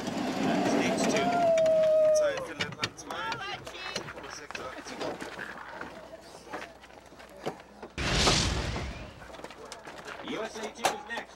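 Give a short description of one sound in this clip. A bobsled rumbles and scrapes along an icy track.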